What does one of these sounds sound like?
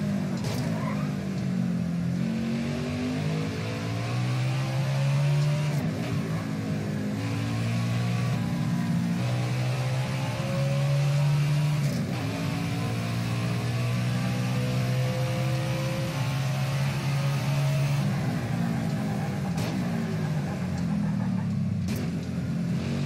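Gear shifts click sharply between the engine's climbs.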